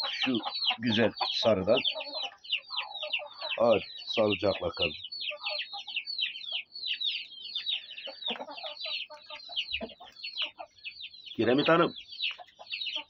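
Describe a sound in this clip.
A rooster crows loudly and close by.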